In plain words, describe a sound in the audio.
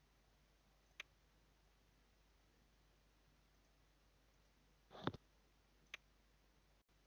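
A menu button clicks sharply a few times.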